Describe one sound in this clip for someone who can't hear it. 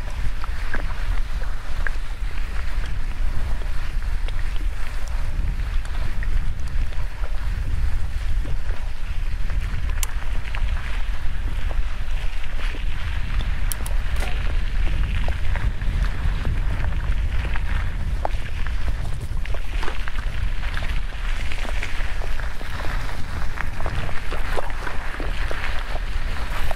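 Bicycle tyres crunch and rattle over a dirt trail.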